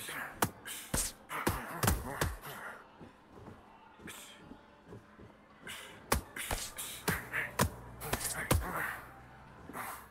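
Boxing gloves thud against a boxer's body and head.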